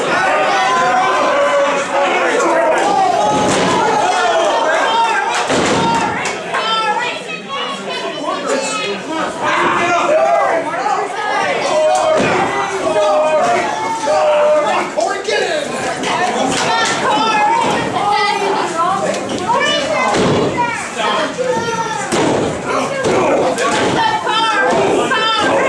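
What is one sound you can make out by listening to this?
Bodies thud and slam onto a wrestling ring.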